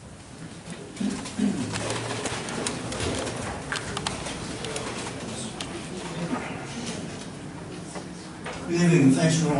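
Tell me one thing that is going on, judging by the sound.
Several people murmur and talk quietly.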